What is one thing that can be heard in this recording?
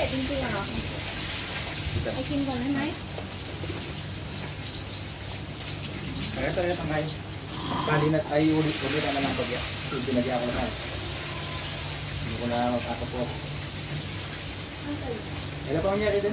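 Plastic bags rustle as food is handled.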